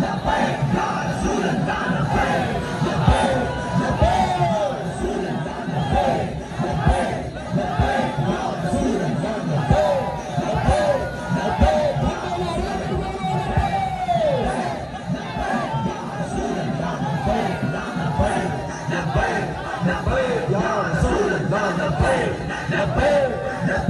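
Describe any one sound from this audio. A man shouts slogans through a loudspeaker.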